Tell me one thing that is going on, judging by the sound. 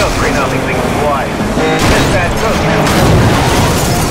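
A police car is smashed in a heavy collision.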